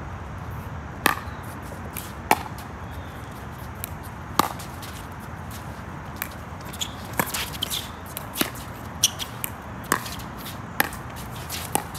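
Paddles pop sharply against a plastic ball in a steady rally.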